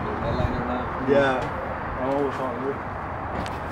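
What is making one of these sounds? A man speaks casually nearby.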